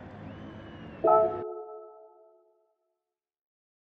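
A bright chime rings out and slowly fades.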